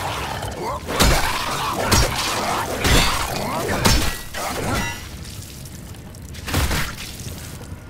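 Heavy blows thud and crack in quick succession.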